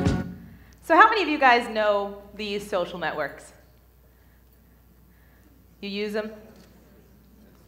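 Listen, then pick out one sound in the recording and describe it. A young woman speaks with animation into a microphone in a large echoing hall.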